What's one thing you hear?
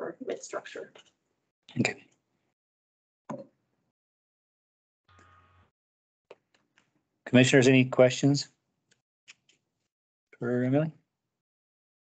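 An adult speaks calmly in short bursts, heard through an online call.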